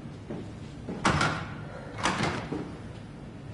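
A heavy door swings open with a thud.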